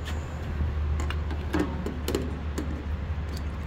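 A fuel nozzle clicks and clatters against a tank's filler neck.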